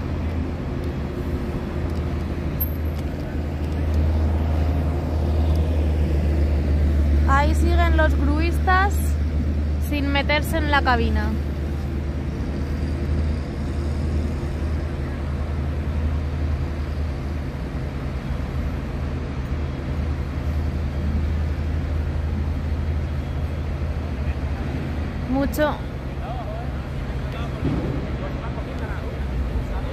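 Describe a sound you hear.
A heavy machine's engine rumbles steadily nearby.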